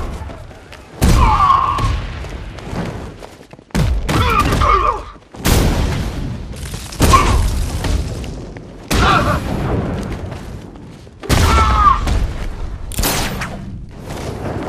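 Heavy punches and kicks thud hard in quick bursts.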